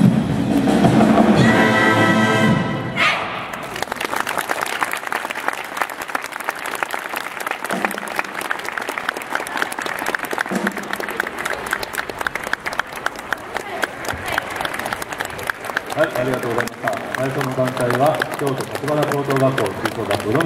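A brass band plays a lively tune outdoors.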